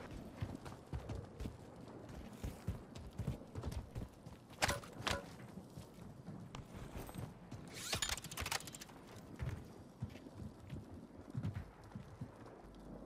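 Footsteps thud and scuff on the ground.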